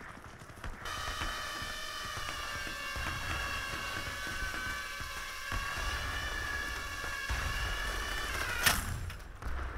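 A small drone whines steadily as it flies.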